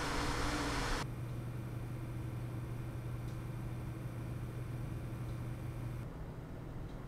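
Computer cooling fans whir more quietly with a low steady hum.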